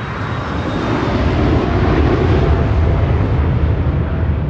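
A jet plane roars overhead.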